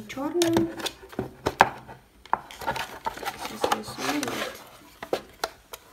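A plastic device knocks and rattles as it is handled.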